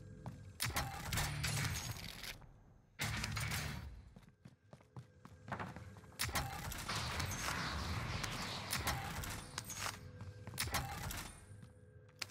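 Weapons clatter and rattle as they are picked up and swapped.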